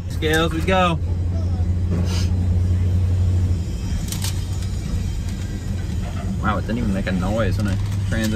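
A car engine hums steadily from inside the cabin.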